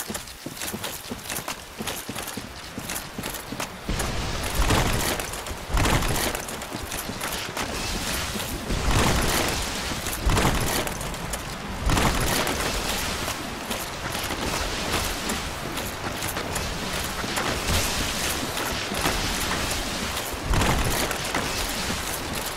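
Armour clanks with each step of a walking knight.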